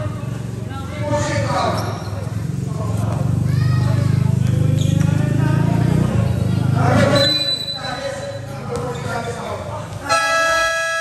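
Sneakers squeak sharply on a hard court.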